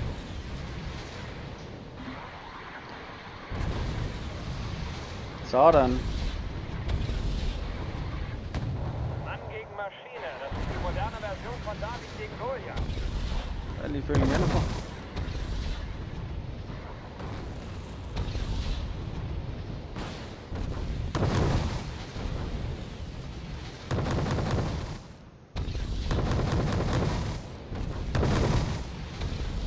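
Explosions and gunfire rumble in a battle.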